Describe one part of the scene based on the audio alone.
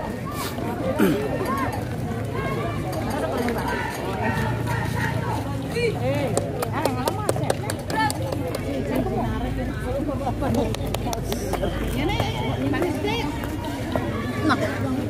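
A crowd of onlookers chatters nearby.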